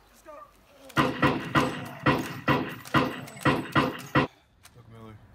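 A pistol fires several sharp shots in quick succession.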